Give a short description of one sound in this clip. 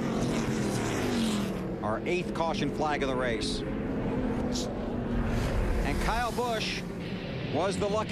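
Race car engines roar steadily.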